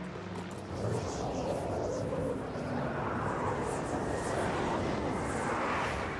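A small drone whirs and buzzes overhead.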